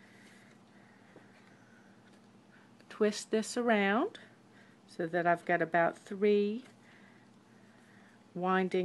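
Paper rustles and crinkles as hands fold it.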